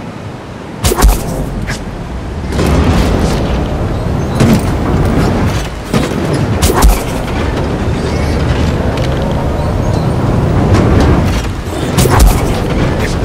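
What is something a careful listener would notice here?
Heavy thuds land on a metal platform.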